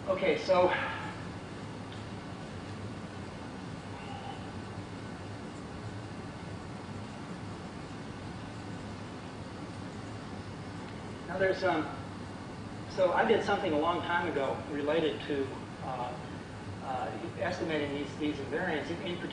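A man lectures, speaking calmly and clearly.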